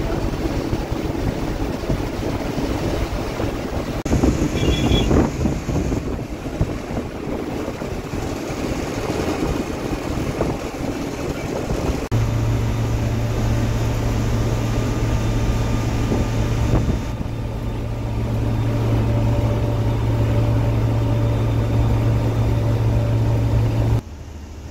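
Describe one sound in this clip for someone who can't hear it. A bus engine drones steadily while driving on a highway.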